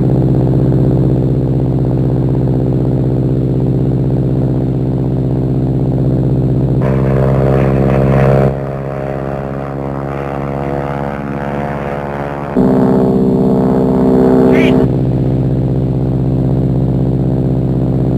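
A propeller engine drones loudly and steadily.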